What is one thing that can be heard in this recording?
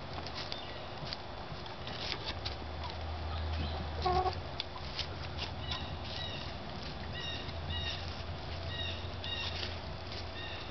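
Hens scratch and peck at gravel.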